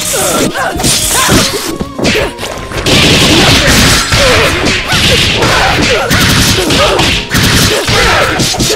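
Punches and slashes land in rapid, crashing bursts.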